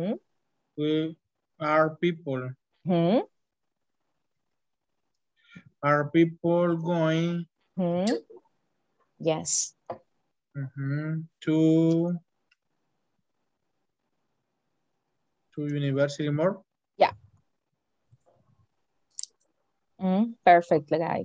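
A woman speaks calmly through an online call, in short phrases with pauses.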